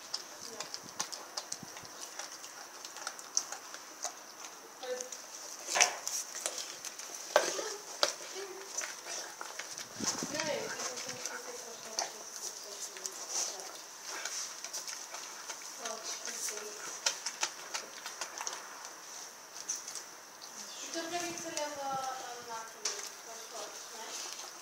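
A dog gnaws and crunches on a raw meat bone close by.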